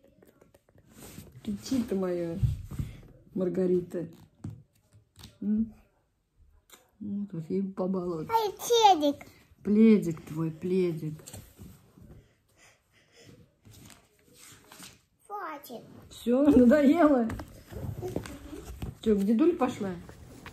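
A little girl talks with animation close by.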